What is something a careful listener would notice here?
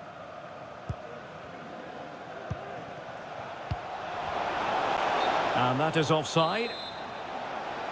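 A stadium crowd roars steadily and swells.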